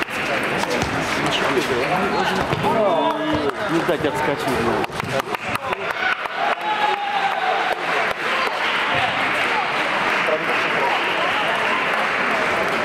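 Voices of men and boys chatter in a large echoing hall.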